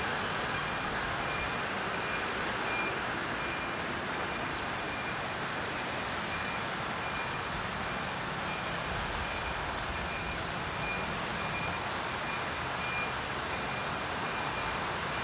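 Footsteps walk on pavement outdoors.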